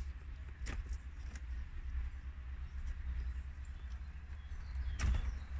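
Plastic parts click and knock as a steering wheel cover is pried loose.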